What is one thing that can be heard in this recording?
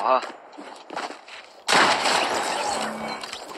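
A gun fires in a video game, with sharp loud bursts.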